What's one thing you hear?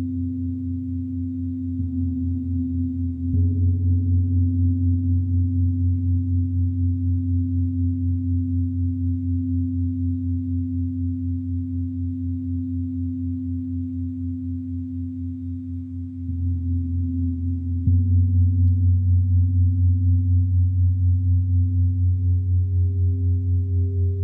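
A singing bowl is rubbed and sings a steady ringing tone.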